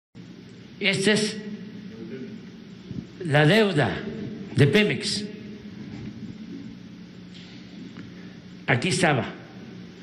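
An elderly man speaks slowly and deliberately into a microphone.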